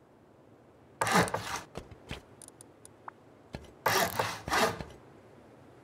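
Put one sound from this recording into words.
Building pieces thud heavily into place.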